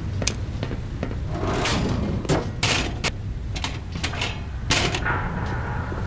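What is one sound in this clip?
Footsteps clang on a metal grating.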